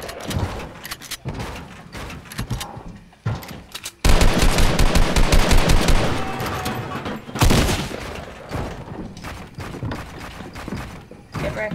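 Wooden walls and ramps snap into place with quick clatters.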